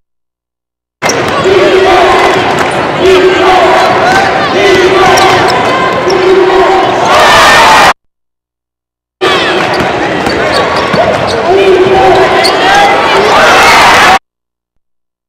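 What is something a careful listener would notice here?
A crowd cheers and murmurs in a large echoing arena.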